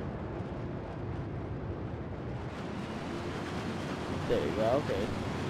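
Jet engines of a large plane roar steadily.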